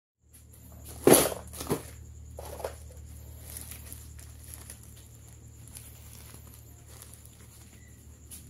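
Plastic wrap crinkles and rustles close by.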